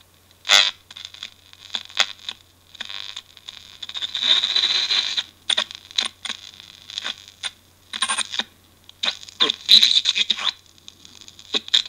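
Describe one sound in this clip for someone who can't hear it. Radio static crackles and hisses in bursts from a small loudspeaker.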